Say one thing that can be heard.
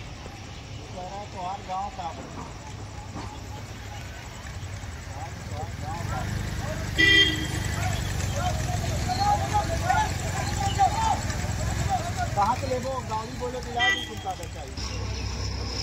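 A crowd of men chatter outdoors.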